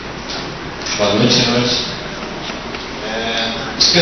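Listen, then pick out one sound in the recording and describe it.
A man speaks into a microphone over a loudspeaker in an echoing room.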